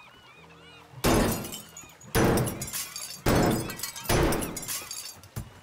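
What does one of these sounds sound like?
A heavy sledgehammer strikes with loud, echoing thuds.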